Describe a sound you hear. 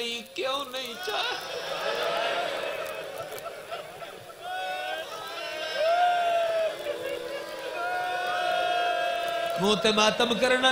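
A man sings in a long, drawn-out chant through a microphone.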